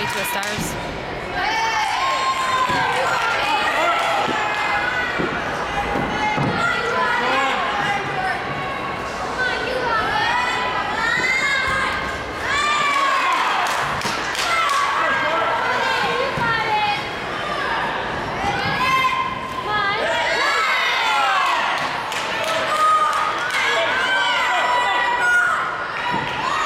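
A crowd of young women and men chatters in a large echoing hall.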